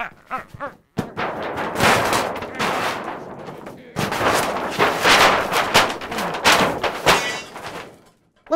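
Paper tears and rips loudly.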